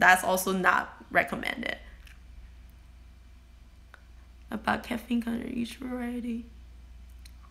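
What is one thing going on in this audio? A young woman speaks casually and close up, with pauses.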